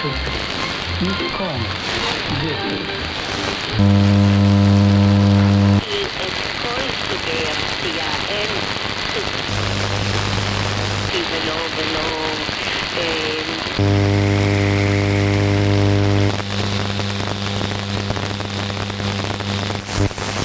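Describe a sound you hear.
Radio static hisses steadily from a receiver.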